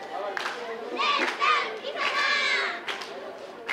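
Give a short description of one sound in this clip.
A group of young women shout loudly in chorus.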